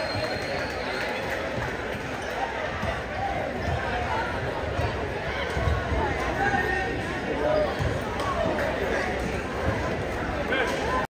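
A crowd of young people chatters in a large echoing gym.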